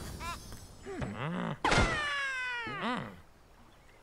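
A slingshot twangs.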